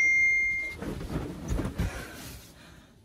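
A young man groans as he wakes up.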